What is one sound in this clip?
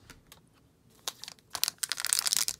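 A plastic trading card pack crinkles as it is handled.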